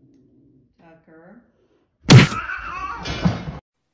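A cat lands on a cat tree with a soft thud.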